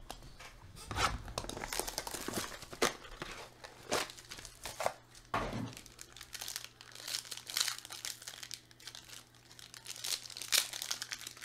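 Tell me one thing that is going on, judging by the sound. A foil wrapper crinkles and rustles in hands close by.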